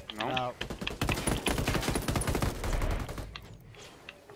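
Rifles fire in rapid bursts of gunshots.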